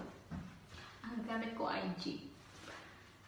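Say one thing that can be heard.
A young woman speaks briefly and calmly close by.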